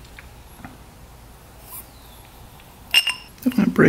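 A metal part clinks against a metal rod.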